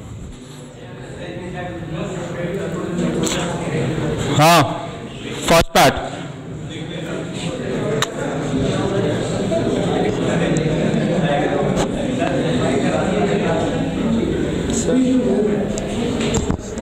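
A young man lectures calmly through a microphone in a room with some echo.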